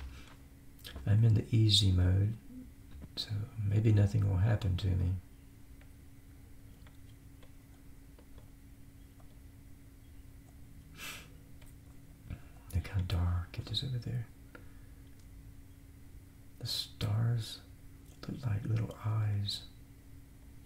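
An older man talks calmly into a close microphone, in bursts with pauses.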